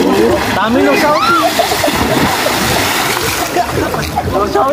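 Water splashes loudly as someone is thrown into a pool.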